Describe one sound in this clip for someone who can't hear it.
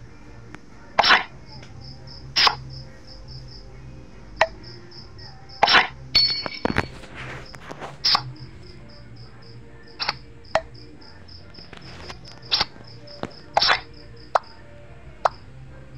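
Short card-game sound effects snap as cards are played.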